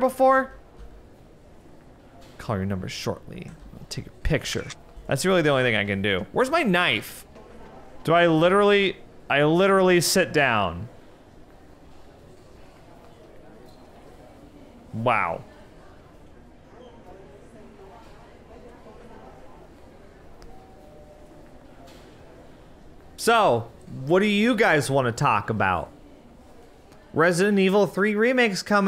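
A young man talks animatedly into a close microphone, with pauses.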